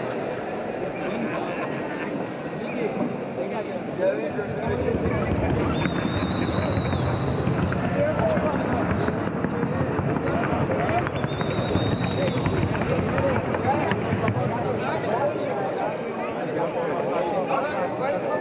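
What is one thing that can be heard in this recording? Horse hooves patter rapidly on packed earth.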